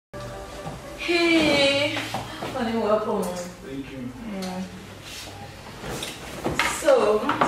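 A woman speaks excitedly nearby.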